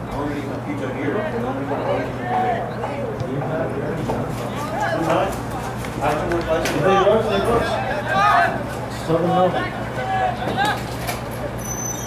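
Spectators nearby talk and shout outdoors.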